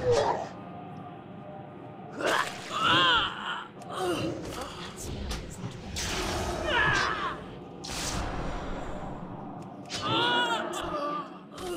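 Combat blows strike with sharp hits.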